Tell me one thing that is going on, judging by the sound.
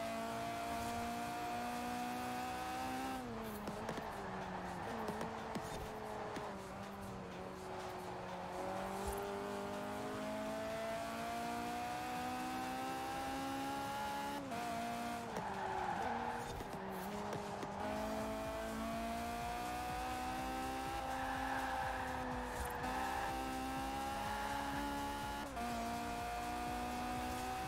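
A car engine roars at high revs, its pitch climbing and dropping sharply with each gear change.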